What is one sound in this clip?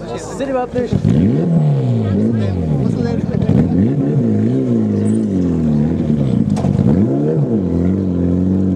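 A rally car engine revs hard and roars nearby, rising and falling in pitch.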